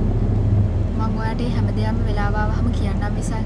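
A young woman sings softly.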